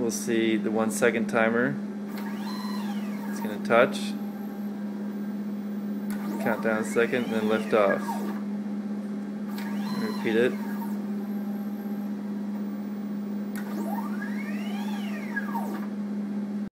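An electric machine hums steadily.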